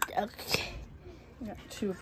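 A metal lid clicks against a glass jar.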